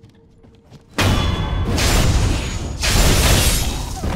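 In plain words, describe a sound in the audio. A sword slashes and stabs into a body.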